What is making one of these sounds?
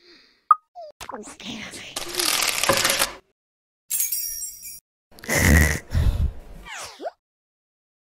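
Soapy scrubbing and bubbling sound effects play in bursts.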